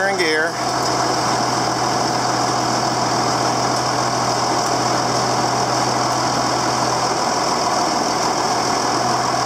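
A tractor engine idles with a steady, loud rumble.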